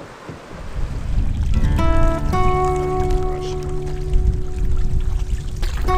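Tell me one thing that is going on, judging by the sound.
A paddle dips and splashes in calm water.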